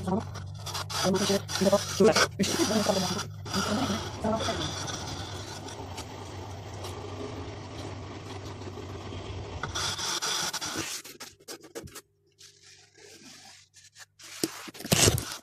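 A cloth rubs against a wooden shelf.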